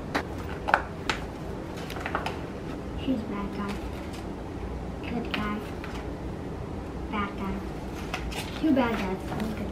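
Plastic cards rustle and click as they are handled.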